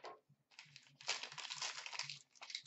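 Plastic wrapping crinkles in a hand.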